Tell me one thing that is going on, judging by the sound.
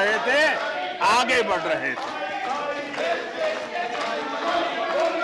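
Several men murmur and call out in the background.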